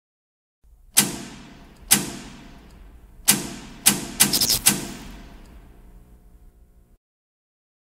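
Switches in an electrical box click loudly one after another.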